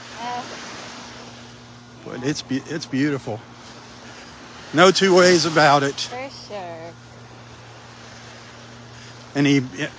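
Small waves lap gently on a shore outdoors.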